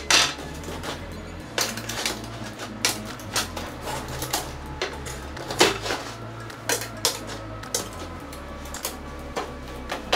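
Thin metal parts click and clatter as a frame is put together.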